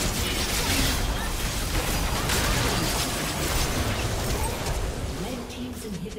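Spells and weapons clash and crackle in a busy fight.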